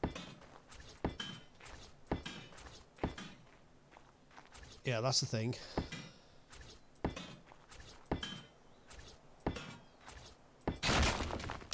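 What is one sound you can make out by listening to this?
Short clacks sound again and again as building pieces are removed.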